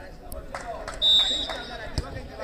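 A referee's whistle blows a short shrill blast.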